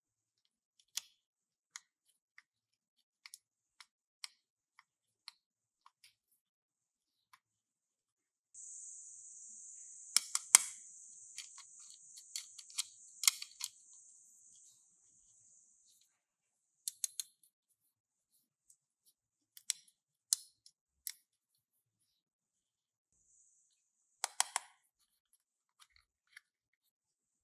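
Plastic toy pieces click and tap as hands handle them.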